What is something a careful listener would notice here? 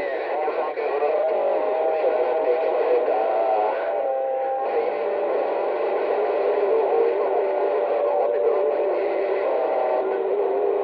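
A radio receiver hisses and crackles with static and warbling tones.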